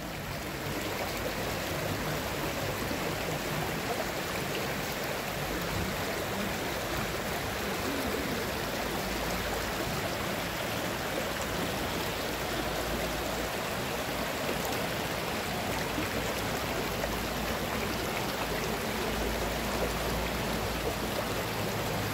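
A shallow stream rushes and splashes steadily over rocks.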